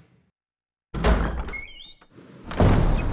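A heavy door creaks open.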